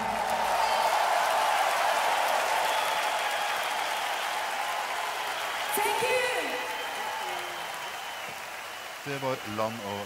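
A large crowd cheers and applauds loudly in a big echoing arena.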